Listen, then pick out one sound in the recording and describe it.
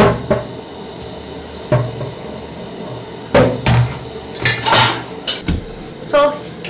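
A metal pot clanks as it is handled.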